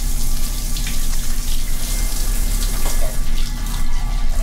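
A metal tap squeaks as a hand turns it.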